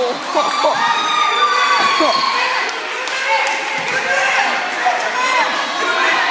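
Basketballs bounce on a wooden floor.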